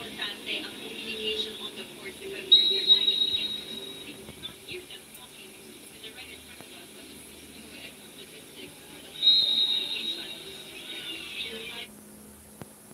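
Crowd noise from a volleyball match plays through a small speaker.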